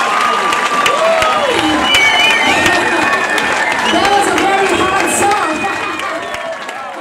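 A woman sings through a microphone over a loudspeaker system.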